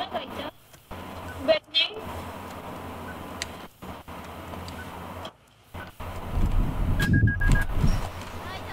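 Keypad buttons click and beep as they are pressed.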